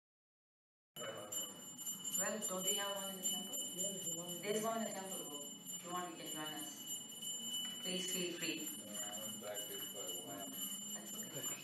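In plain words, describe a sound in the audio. A harmonium plays.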